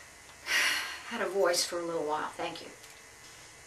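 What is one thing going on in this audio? A middle-aged woman speaks briefly and calmly close by.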